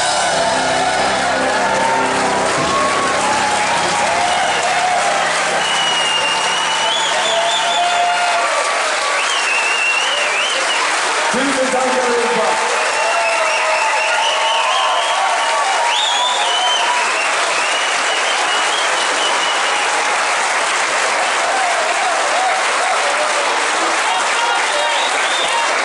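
A band plays loud rock music through speakers.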